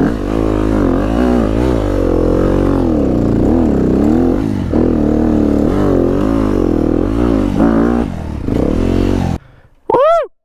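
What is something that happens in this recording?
A four-stroke 250 enduro motorcycle revs on and off the throttle, climbing a dirt trail.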